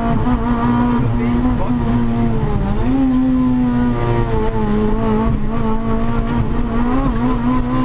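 A car engine roars loudly from inside the cabin, its pitch rising and falling.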